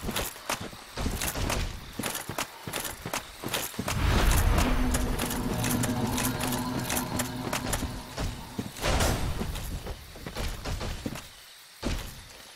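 Armoured footsteps clank on soft ground.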